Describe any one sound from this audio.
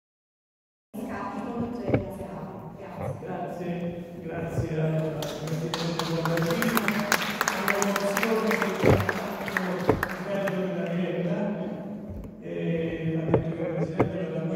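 An elderly man speaks into a microphone, heard through loudspeakers in an echoing hall.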